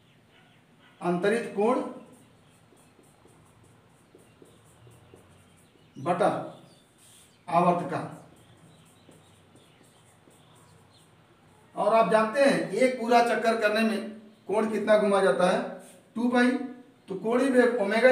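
A man speaks in short bursts, calmly explaining, close by.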